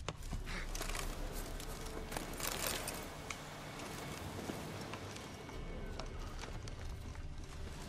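Leaves and branches rustle as something pushes through bushes.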